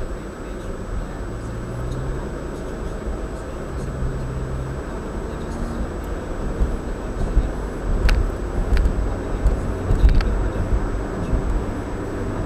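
A car drives steadily along a road, its tyres rumbling on the pavement.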